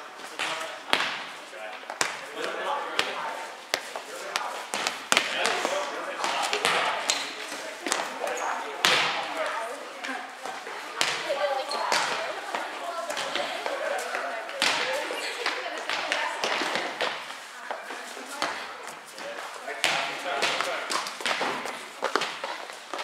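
Young people chatter and call out, echoing in a large hall.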